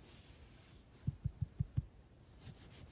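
A hand pats a small dog's back with soft thumps.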